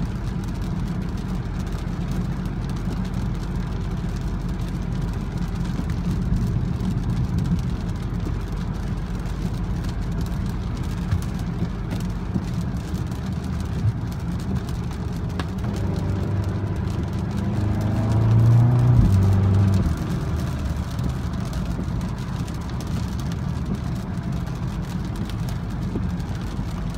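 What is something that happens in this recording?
A car engine hums steadily from inside the cabin while driving.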